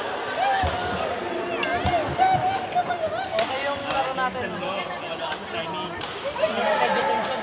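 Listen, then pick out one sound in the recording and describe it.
Sports shoes squeak on a court floor.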